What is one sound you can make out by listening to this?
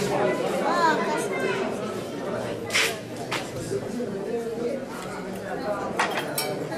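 A group of men and women chat nearby.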